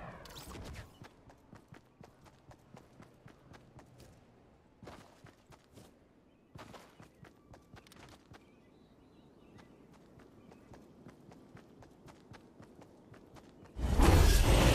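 Footsteps patter quickly on grass and pavement.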